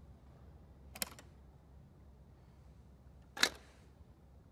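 A man clicks buttons.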